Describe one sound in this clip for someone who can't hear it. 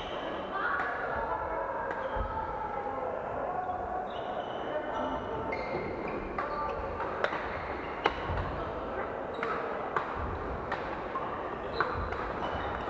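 The sound echoes through a large hall.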